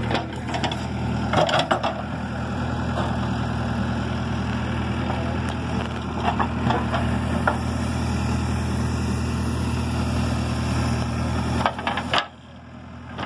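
An excavator bucket scrapes and thuds into dry soil.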